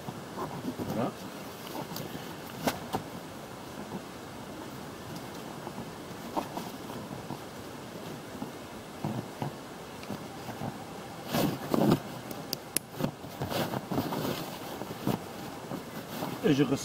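Straps and a dry bag rustle and scrape against an inflatable boat.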